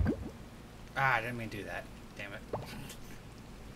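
A man speaks briefly and casually into a nearby microphone.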